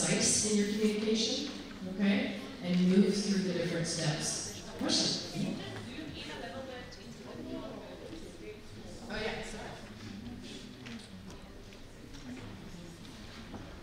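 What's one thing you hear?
A woman speaks calmly through a microphone in a large room with echo.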